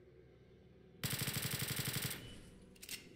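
A gun fires a rapid burst of shots.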